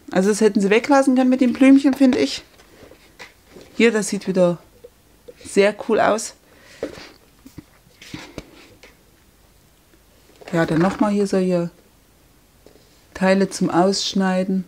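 Sheets of paper rustle and slide as they are handled.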